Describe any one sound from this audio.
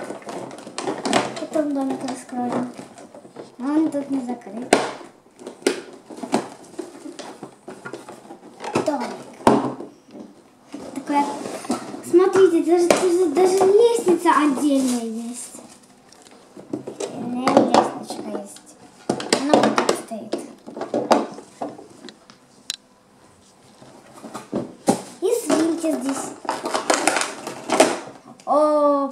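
Plastic toy pieces click and rattle as they are handled.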